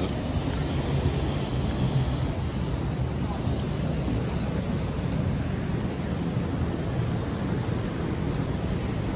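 River water rushes steadily nearby.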